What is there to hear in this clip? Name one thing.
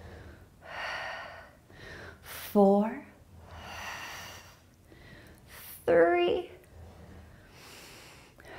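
A woman breathes out deeply and slowly.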